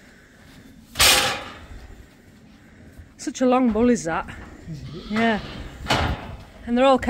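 A metal gate clanks and rattles.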